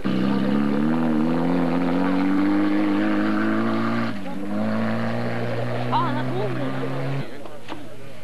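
A rally car engine roars and revs as the car speeds away on a gravel road.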